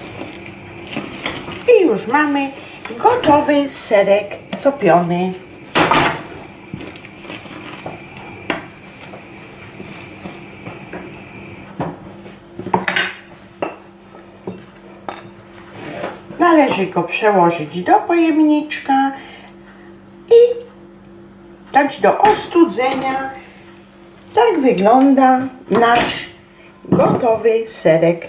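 A spatula scrapes and stirs a thick sauce in a frying pan.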